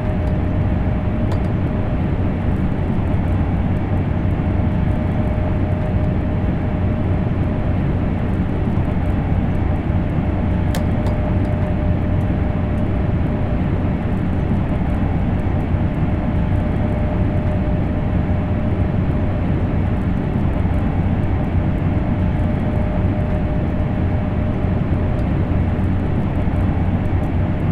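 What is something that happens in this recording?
A high-speed train rumbles steadily along the rails.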